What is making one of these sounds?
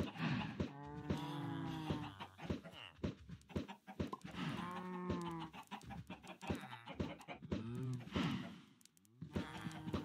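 Dull knocks of blocks being struck repeat in quick succession.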